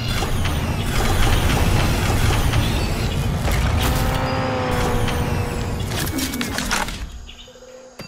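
A heavy machine rumbles loudly.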